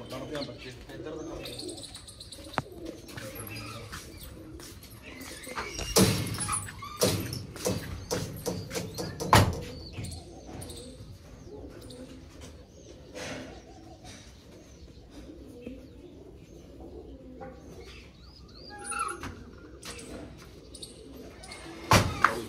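Caged birds chirp and call.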